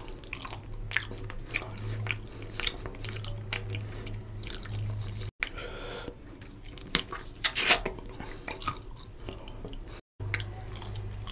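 Fingers squish and mix wet rice close to a microphone.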